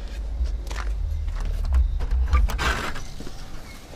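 A door rattles as it is pushed open.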